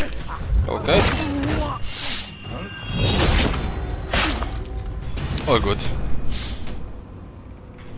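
Metal weapons clash and clang in a fight.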